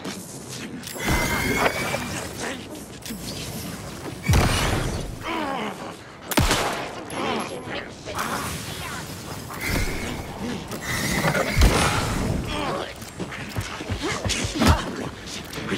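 A pistol fires sharp shots, several times.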